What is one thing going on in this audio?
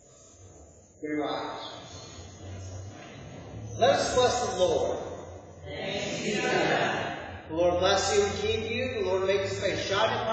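A man speaks aloud in a large echoing hall.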